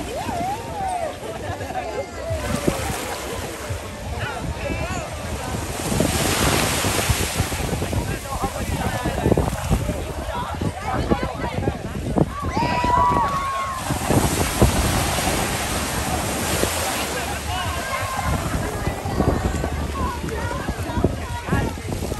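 A crowd of young men and women chatter and shout outdoors.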